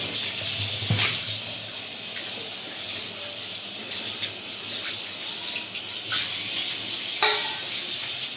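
A metal plate clanks against a sink.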